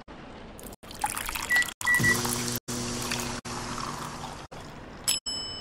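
A brewing machine hums loudly.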